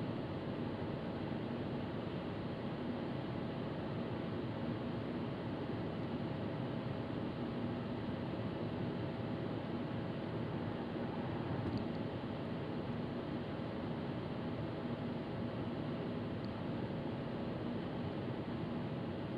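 A car engine hums steadily with road noise from inside a moving car.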